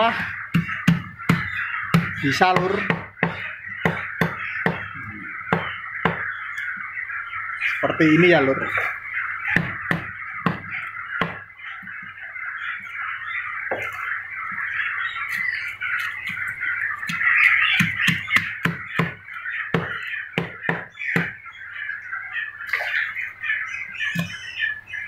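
A cleaver chops sharply and repeatedly on a wooden block.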